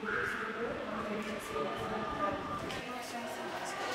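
Teenage girls chatter and laugh nearby.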